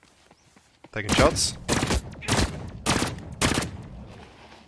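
A rifle fires several loud shots in quick succession.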